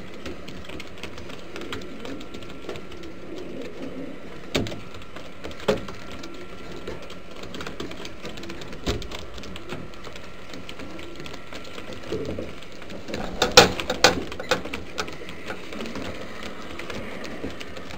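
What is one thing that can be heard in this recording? Pigeon feet scratch and tap on a wooden floor.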